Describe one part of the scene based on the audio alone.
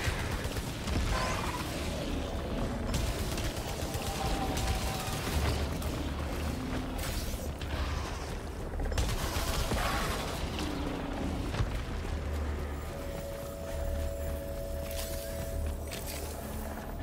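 A young man talks into a microphone with animation, close by.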